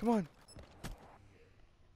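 A gun fires with sharp cracks.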